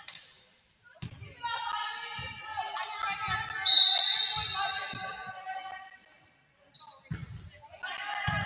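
A volleyball is struck with dull thumps in a large echoing gym.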